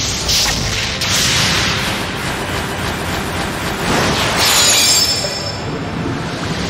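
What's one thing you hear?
Magical game effects whoosh and roar in bursts.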